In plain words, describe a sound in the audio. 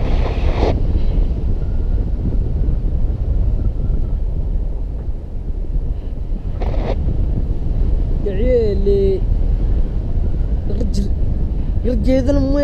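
Strong wind rushes and buffets loudly throughout.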